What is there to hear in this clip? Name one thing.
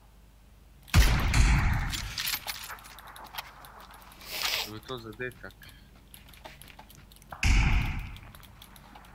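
A rifle fires loud booming shots.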